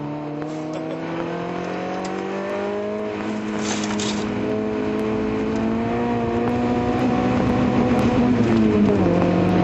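A car engine hums loudly and rises steadily in pitch as it speeds up.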